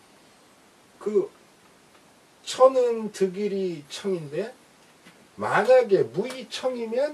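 An elderly man speaks calmly and clearly, as if explaining, close by.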